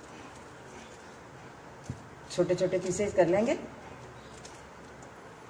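A knife cuts through a firm vegetable.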